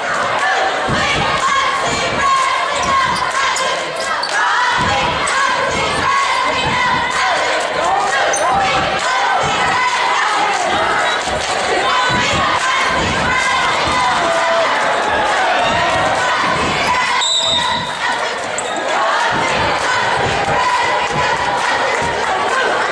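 A crowd chatters and cheers in a large echoing gym.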